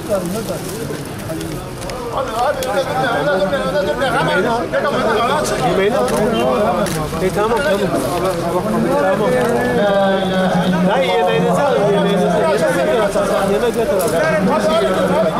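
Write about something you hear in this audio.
A crowd of men talk over one another nearby.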